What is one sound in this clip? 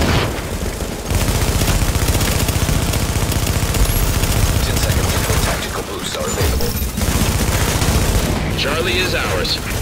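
Rapid gunfire rattles loudly and close.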